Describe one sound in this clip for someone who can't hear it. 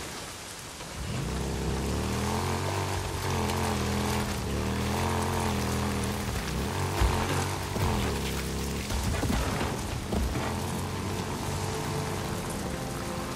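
A motorcycle engine starts and revs up, rumbling as the bike rides off.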